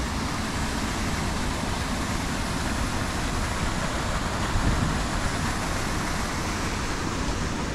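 A fountain splashes steadily into water.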